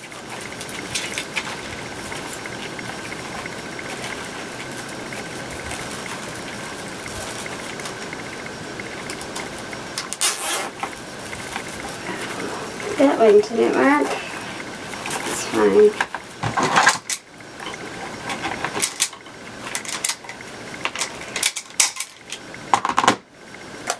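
Plastic mesh ribbon rustles and crinkles as it is twisted and scrunched by hand.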